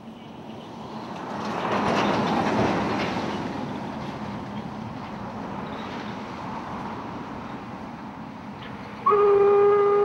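A truck drives past on a nearby road.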